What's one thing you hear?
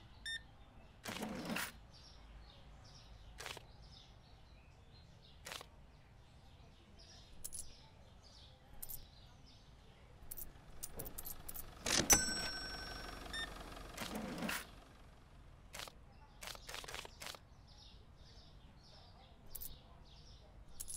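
A cash register drawer clicks and rattles as bills and coins are picked out.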